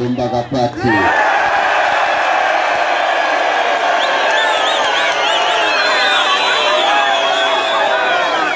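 A large crowd cheers and whistles loudly.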